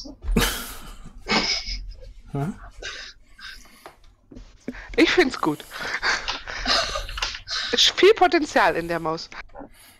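A woman laughs over an online call.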